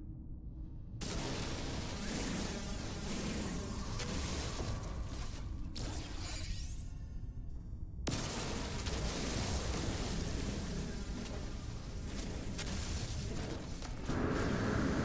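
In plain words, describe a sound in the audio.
A mining laser hums and crackles steadily.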